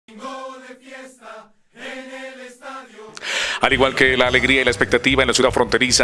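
A crowd of fans sings and chants loudly.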